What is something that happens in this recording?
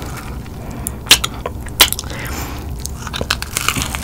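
A young woman bites into crunchy fried chicken.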